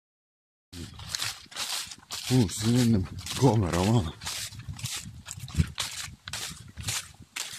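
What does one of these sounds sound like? Footsteps crunch and rustle through dry leaves at a quick pace.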